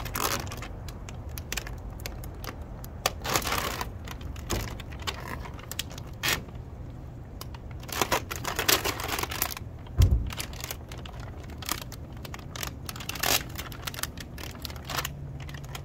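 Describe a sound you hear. A plastic film crinkles and rustles under hands.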